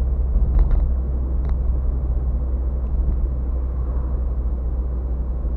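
A car engine hums steadily from inside the cabin while driving.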